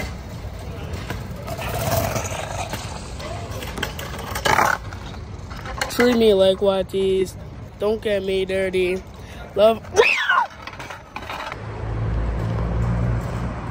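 Scooter wheels roll and rattle over pavement.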